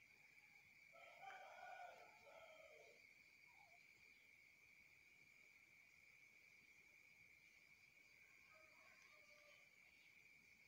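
A newborn baby grunts and coos softly close by.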